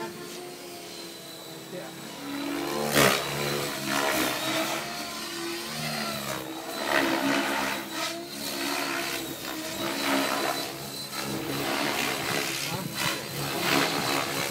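An electric model helicopter's motor whines as it flies aerobatics overhead.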